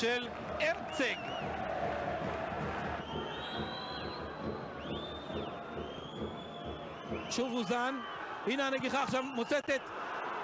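A crowd murmurs and cheers in a large open stadium.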